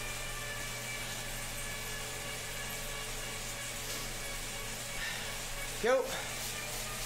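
An indoor bike trainer whirs steadily under pedalling.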